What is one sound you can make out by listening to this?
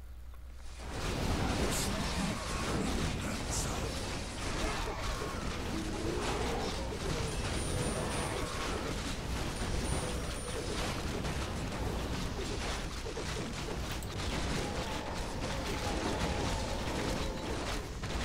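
Swords clash and weapons strike in a noisy battle.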